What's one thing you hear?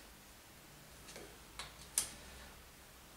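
A screwdriver clicks against a metal screw.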